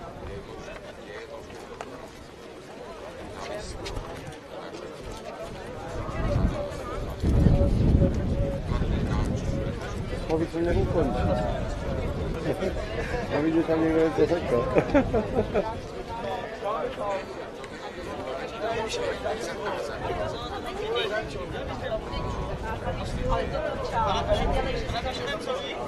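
A crowd of young men and women chatters outdoors.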